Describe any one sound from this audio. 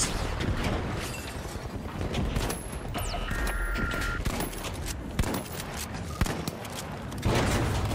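An explosion booms and roars.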